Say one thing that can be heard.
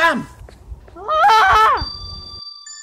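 A teenage boy shouts loudly.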